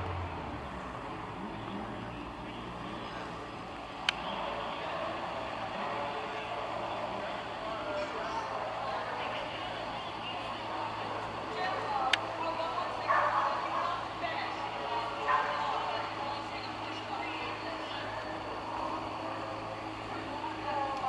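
A race car engine idles with a steady low rumble.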